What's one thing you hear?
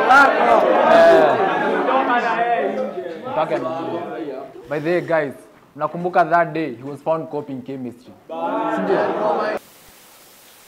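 A young man speaks calmly, close up.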